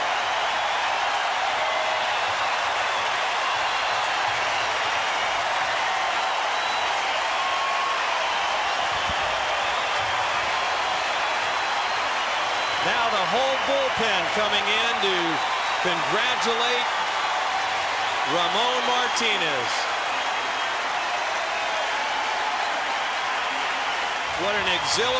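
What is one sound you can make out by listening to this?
A large crowd cheers and roars loudly in a big open stadium.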